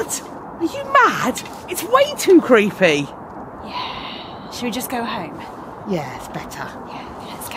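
A young woman exclaims with animation close by.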